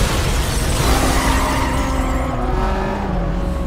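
Tyres screech as a car drifts around a corner.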